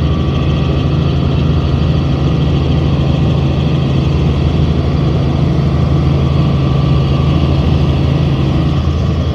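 An aircraft engine drones loudly and steadily from inside the cabin.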